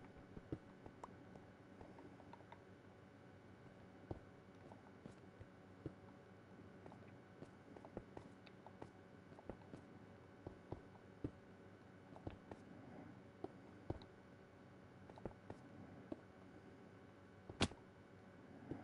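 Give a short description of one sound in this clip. Stone blocks are placed one after another with short, dull clicks.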